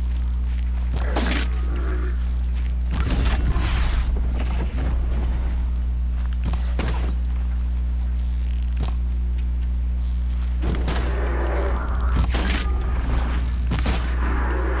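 A bow string twangs as arrows are loosed.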